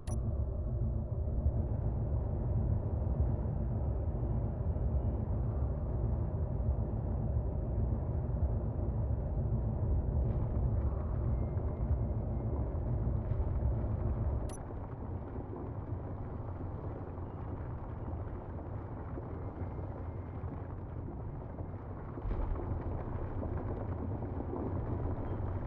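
A ship's drill grinds through rock with a deep, steady rumble.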